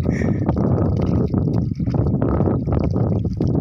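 Water splashes as a man rinses his face with his hands.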